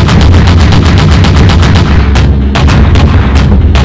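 Explosions boom in the sky.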